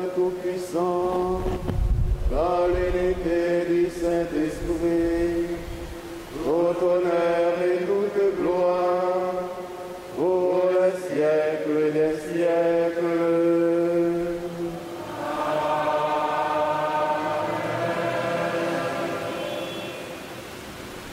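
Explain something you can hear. A man sings a slow chant through a microphone.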